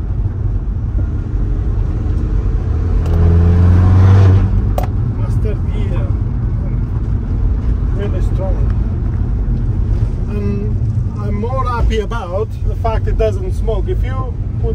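Tyres rumble on a rough road.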